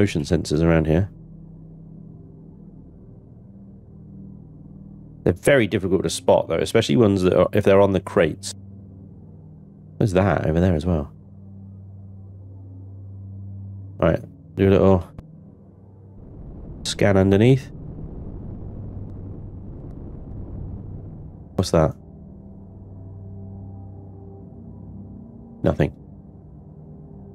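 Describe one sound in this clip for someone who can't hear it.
A spaceship engine hums low and steadily.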